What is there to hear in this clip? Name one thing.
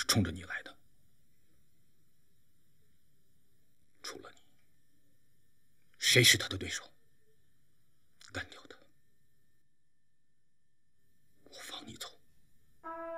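A man speaks firmly in short, quiet phrases.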